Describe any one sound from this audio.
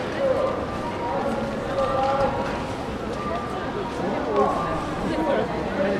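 A crowd of adults chatters nearby outdoors.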